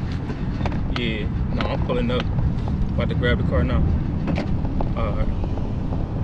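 A man talks on a phone, close by, with animation.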